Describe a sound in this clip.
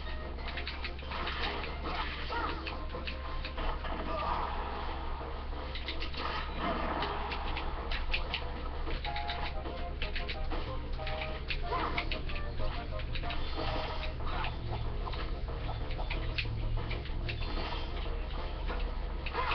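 Cheerful game music plays through a small loudspeaker.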